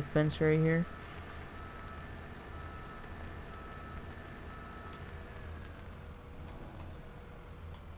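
A diesel loader engine rumbles steadily.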